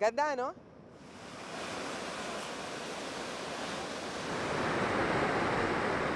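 Waves crash and surge onto a pebble shore.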